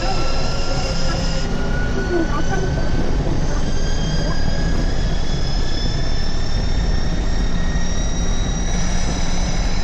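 Tyres roar steadily on the road.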